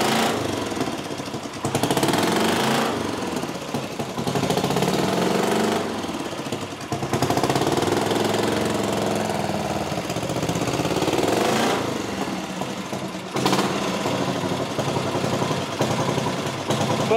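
A motorcycle engine idles with a deep, throbbing rumble.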